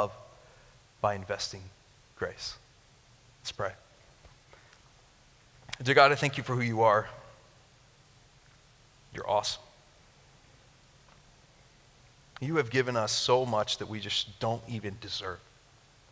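A young man speaks calmly and haltingly through a headset microphone, with long pauses.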